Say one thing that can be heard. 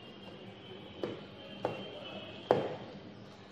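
Cardboard thumps and taps under handling.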